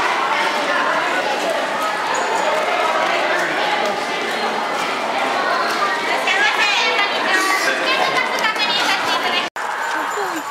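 A crowd chatters in an echoing concourse.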